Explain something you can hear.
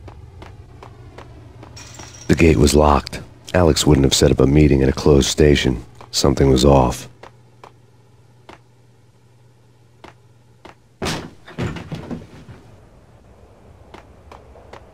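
Footsteps run across a hard tiled floor.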